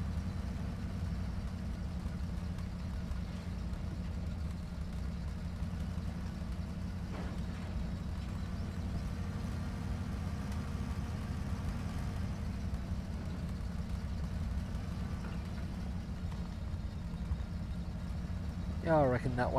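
Tyres roll over rough dirt ground.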